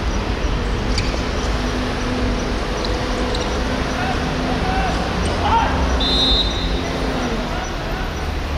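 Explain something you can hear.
A football is kicked with a dull thud outdoors.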